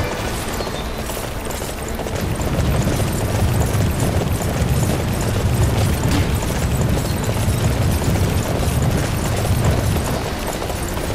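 A large beast gallops with rapid, heavy footfalls.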